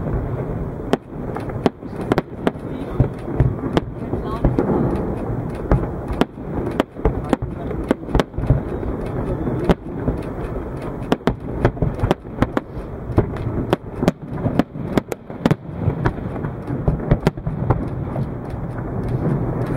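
Fireworks burst with loud, rapid bangs and crackles outdoors.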